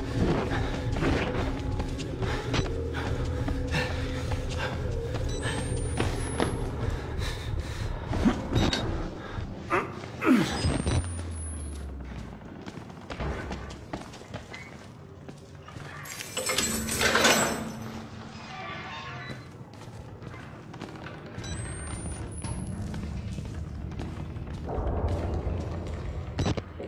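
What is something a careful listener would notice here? Footsteps thud on wooden stairs and a hard floor.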